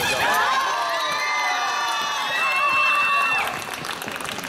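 A young woman shouts in triumph in a large echoing hall.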